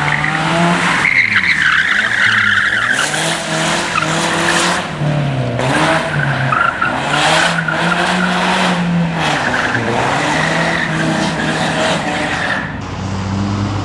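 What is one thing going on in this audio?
Tyres squeal as a car slides around a corner.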